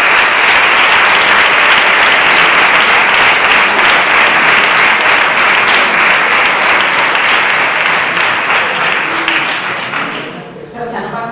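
A crowd applauds loudly in an echoing hall.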